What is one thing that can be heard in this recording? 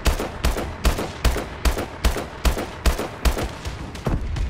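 A rifle fires loud shots in a rapid, regular rhythm.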